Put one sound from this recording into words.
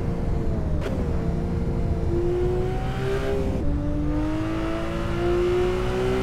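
A car engine revs steadily, its pitch dropping briefly at a gear change.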